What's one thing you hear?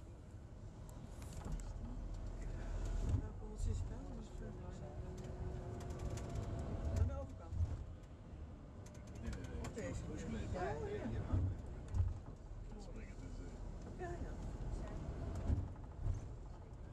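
A bus engine hums steadily with a low rumble.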